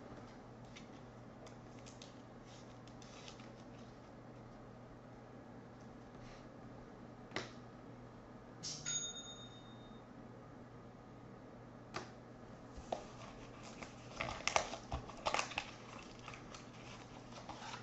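Plastic card holders rustle and click as hands handle them.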